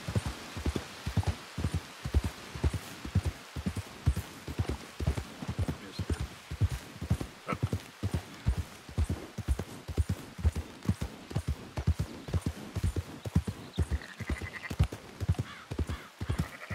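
Horse hooves thud steadily on a soft dirt trail.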